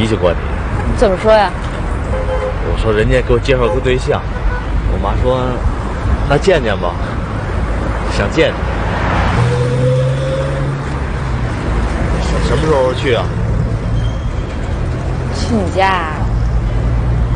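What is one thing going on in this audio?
A middle-aged man talks cheerfully nearby.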